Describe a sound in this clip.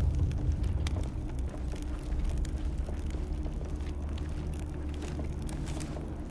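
Footsteps shuffle softly on a gritty floor.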